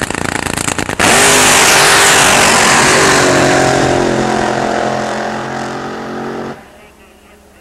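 A race car engine roars to full power and speeds away, fading into the distance.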